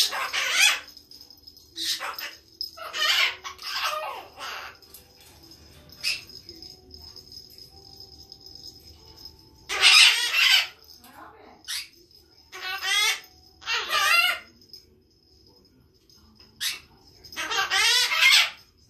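A parrot squawks and chatters close by in short bursts.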